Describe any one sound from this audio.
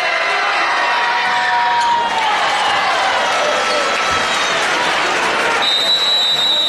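Basketball shoes squeak on a wooden court.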